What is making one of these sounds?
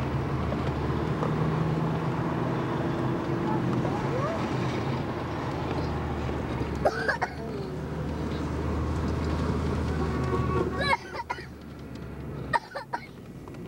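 A car drives along a road, heard from inside.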